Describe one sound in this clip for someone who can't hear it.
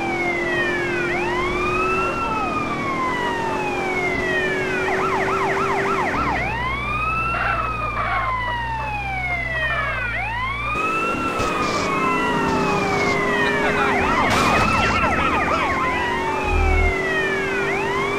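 A police siren wails, sweeping up and down continuously.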